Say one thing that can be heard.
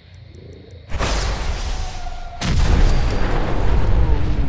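A huge explosion booms and roars.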